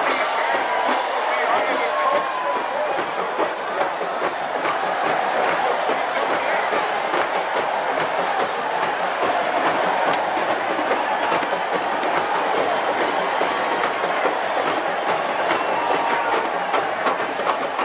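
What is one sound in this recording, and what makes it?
A brass marching band plays outdoors in a large stadium, heard from the stands.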